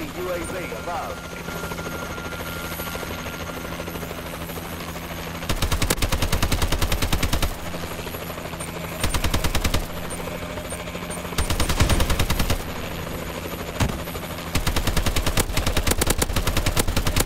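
A helicopter's rotor and engine drone steadily throughout.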